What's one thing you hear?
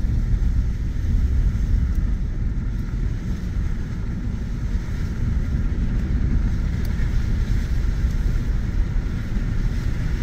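Tyres rumble over a gravel dirt road.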